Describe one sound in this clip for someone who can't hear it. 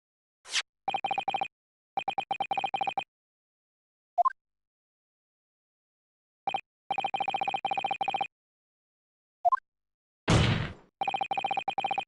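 Rapid electronic blips chatter in short bursts as text types out.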